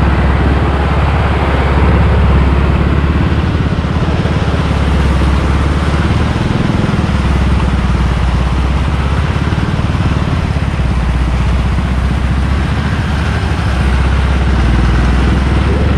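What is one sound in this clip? A tractor engine chugs loudly and steadily nearby.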